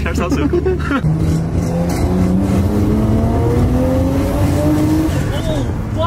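A car engine revs up, rising in pitch as it accelerates through the gears.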